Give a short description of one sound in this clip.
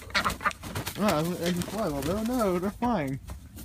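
A hen squawks loudly.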